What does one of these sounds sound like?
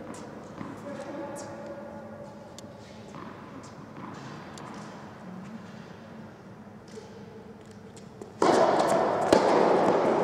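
A tennis ball is struck with a racket and bounces, echoing in a large hall.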